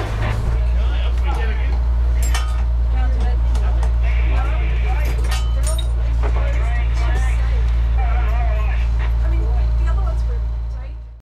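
A diesel engine rumbles steadily and loudly close by.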